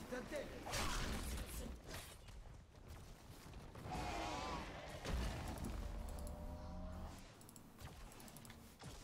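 Game sound effects of fighting and spells ring out.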